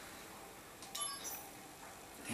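A short electronic menu chime sounds.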